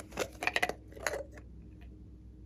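A plastic bottle is squeezed with a sticky squelch.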